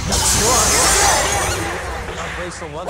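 A loud rushing blast whooshes and fades.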